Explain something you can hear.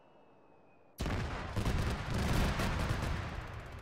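An explosion booms with a crackling blast.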